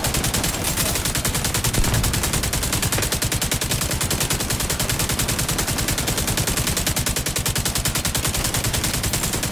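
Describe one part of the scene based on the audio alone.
An automatic rifle fires rapid, continuous bursts close by.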